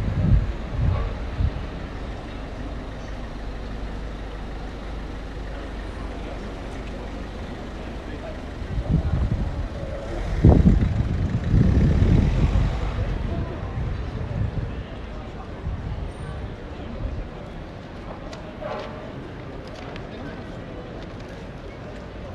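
Footsteps of people walking tap on pavement outdoors.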